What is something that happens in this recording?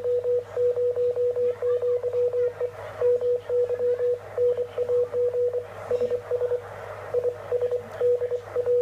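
A radio receiver beeps out rapid Morse code tones.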